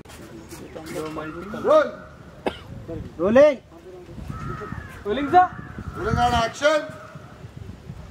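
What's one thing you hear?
A young man speaks loudly and with strong feeling.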